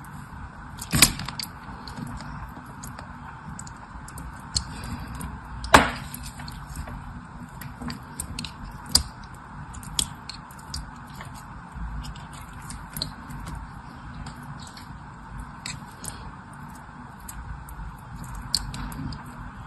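Small gel pieces pop and snap.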